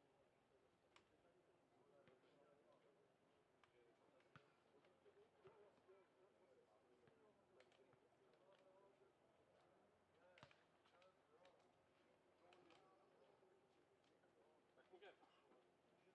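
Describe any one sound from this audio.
A ball thuds on clay and is kicked now and then.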